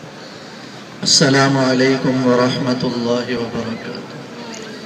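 A man chants melodiously into a microphone, heard through a loudspeaker.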